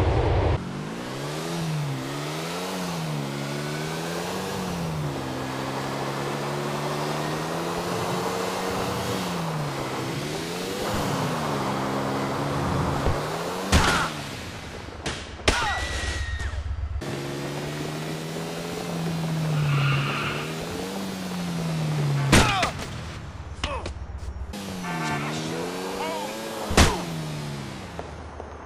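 A motorbike engine revs up and down as it speeds along.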